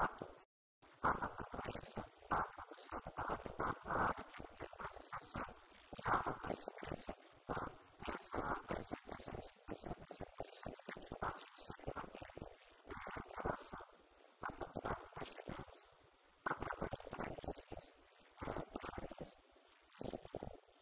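A man speaks calmly through a microphone and loudspeaker in an echoing room.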